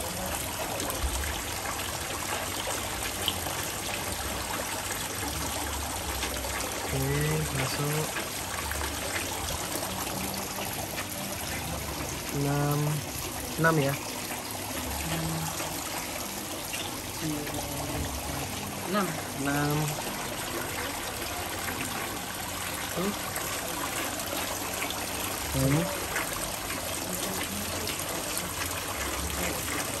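Shallow water splashes and sloshes as hands and feet move through it.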